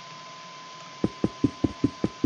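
Blocks are set down with quick soft clicks.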